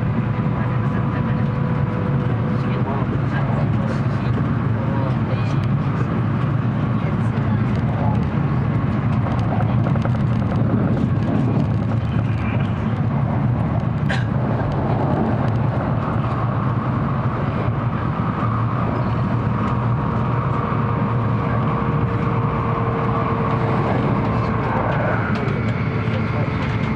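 A train rumbles steadily along the tracks, heard from inside the carriage.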